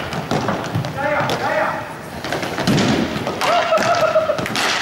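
Young players shout to each other across the hall.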